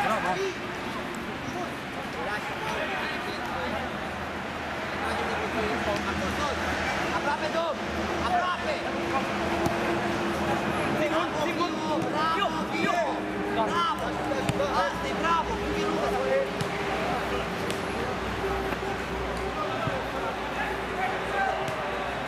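Young men shout and call out across an outdoor pitch.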